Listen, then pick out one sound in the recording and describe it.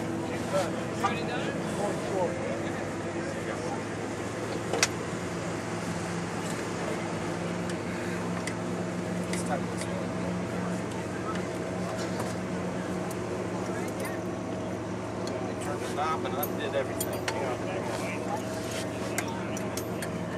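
Buckles and straps click and rustle as a seat harness is fastened.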